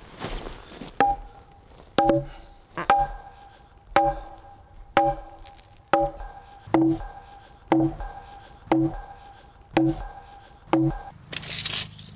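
A sledgehammer pounds a steel stake with steady ringing metallic blows.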